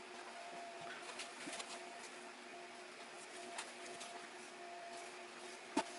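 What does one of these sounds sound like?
Leather rustles and creaks softly as hands fold and handle it.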